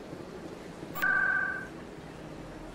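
An electronic chime beeps loudly once.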